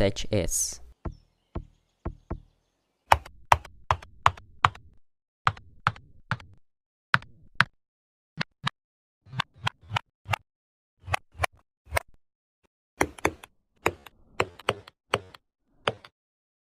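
Keyboard keys click in quick, uneven bursts.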